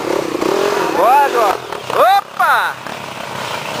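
A dirt bike engine revs hard up close, rising and falling in sharp bursts.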